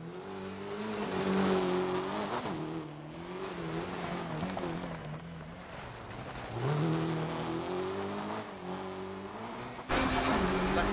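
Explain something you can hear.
Tyres crunch and spray over snowy gravel.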